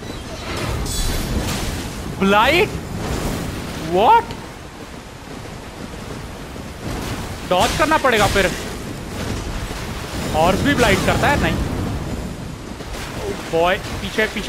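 Metal weapons clash and ring in a fight.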